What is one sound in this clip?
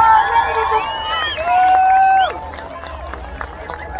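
Fireworks crackle and pop in the sky.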